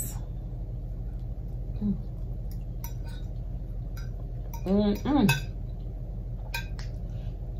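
A fork scrapes and clicks on a plate.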